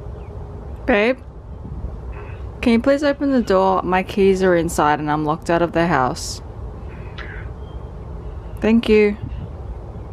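A woman talks with animation through a phone's loudspeaker.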